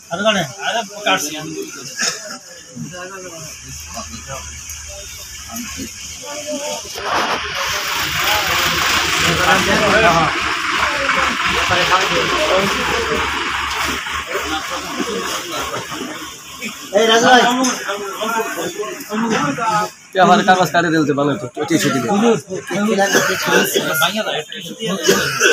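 A crowd of men talks and murmurs nearby.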